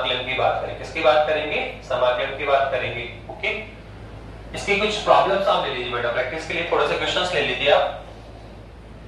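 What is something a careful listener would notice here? A man speaks clearly through a headset microphone, explaining with animation.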